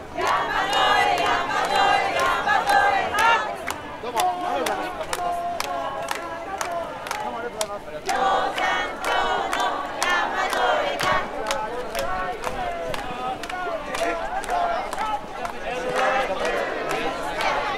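A crowd of people chatters all around.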